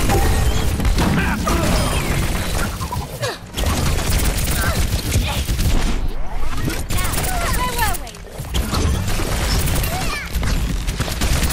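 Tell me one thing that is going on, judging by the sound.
Energy blasts crackle and boom.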